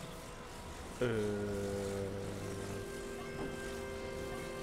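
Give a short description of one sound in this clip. A soft magical hum drones steadily.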